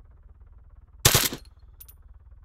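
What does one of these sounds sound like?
A rifle fires a single loud shot nearby.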